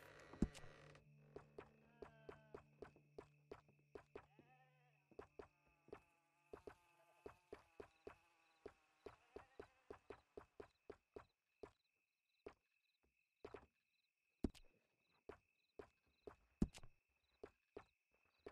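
Soft menu clicks tick repeatedly.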